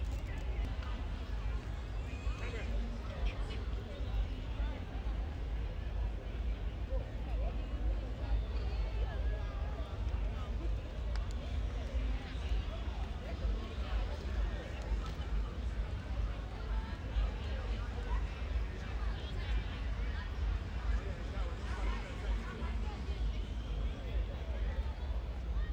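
A crowd of young people chatters on a busy street outdoors.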